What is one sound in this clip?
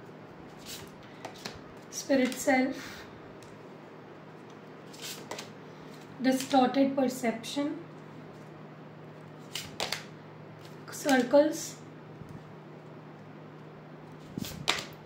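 Tarot cards slide and tap softly as they are laid on a table.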